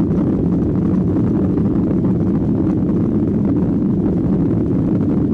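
A jet engine roars steadily from inside an aircraft cabin as the plane taxis.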